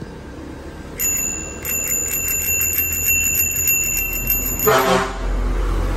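A bicycle bell rings rapidly and repeatedly, close by.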